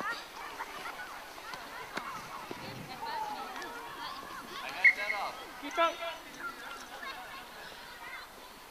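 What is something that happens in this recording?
Children shout and call out excitedly outdoors.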